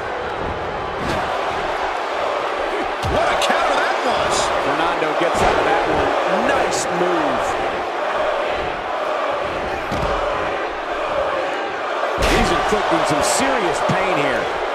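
Heavy bodies slam onto a wrestling ring mat with loud thuds.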